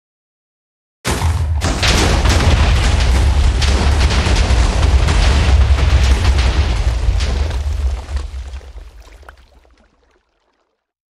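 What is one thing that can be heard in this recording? A loud explosion booms and rumbles, then slowly fades.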